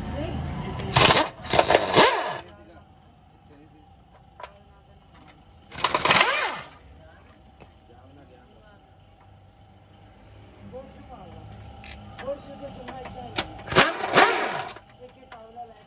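A pneumatic impact wrench rattles loudly in short bursts.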